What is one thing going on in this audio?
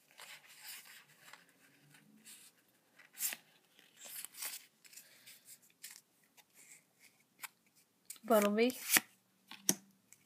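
Trading cards rustle and flick against each other in someone's hands.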